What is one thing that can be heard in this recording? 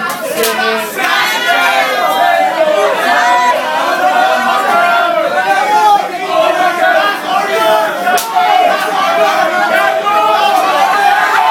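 A crowd of young men and women sings along loudly nearby.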